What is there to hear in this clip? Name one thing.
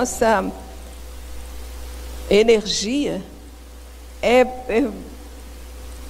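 A middle-aged woman speaks with emphasis into a microphone, in short bursts with pauses.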